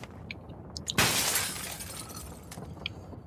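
Glass shatters once with a sharp crash.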